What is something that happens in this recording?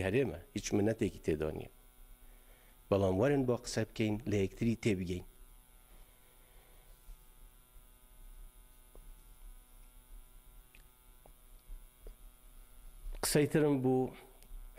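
An elderly man speaks calmly and deliberately into a microphone, with pauses.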